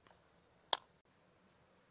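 A plastic mould clicks as it is handled.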